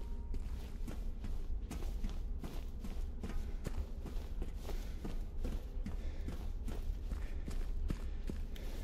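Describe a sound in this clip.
Footsteps thud steadily on a hard, gritty floor.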